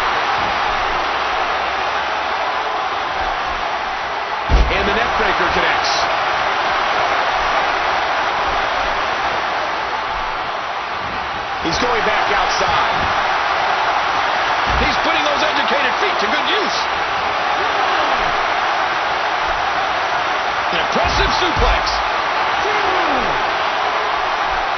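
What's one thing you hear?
A crowd cheers and roars steadily in a large arena.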